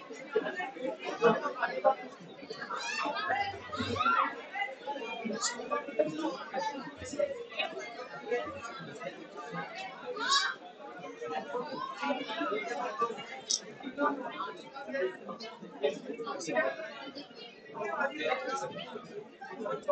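A large crowd of young men and women chatters loudly in an echoing hall.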